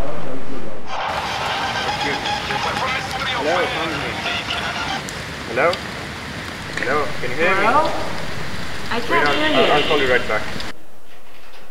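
A young woman talks on a phone.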